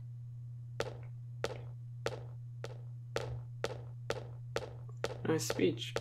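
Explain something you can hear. Footsteps tap at a steady pace on a hard floor.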